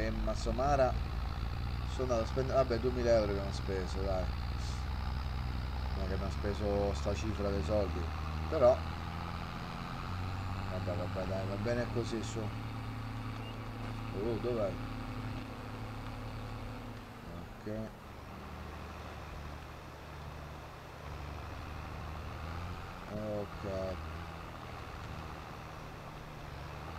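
A tractor engine drones steadily at low pitch.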